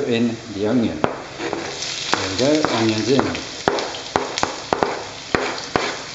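Chopped onions are knocked from a plastic board into a pan.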